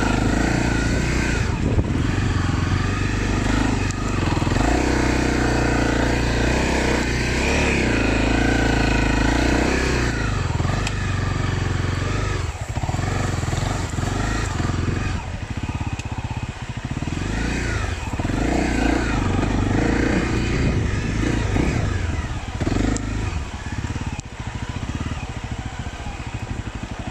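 A motorcycle engine revs and roars up close, rising and falling in pitch.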